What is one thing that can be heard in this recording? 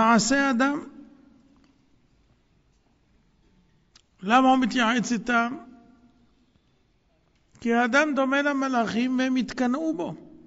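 An elderly man speaks calmly into a microphone in bursts with pauses.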